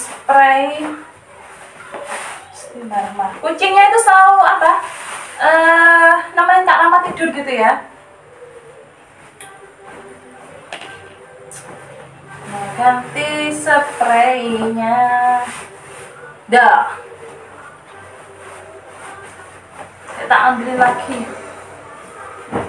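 Cloth rustles as clothes are folded.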